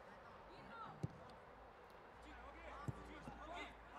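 A football is kicked with dull thuds, outdoors.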